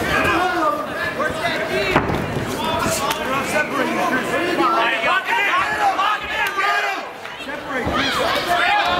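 A large crowd cheers and shouts in an echoing arena.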